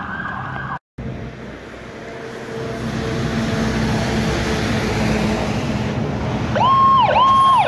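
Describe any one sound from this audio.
An ambulance engine rumbles while idling.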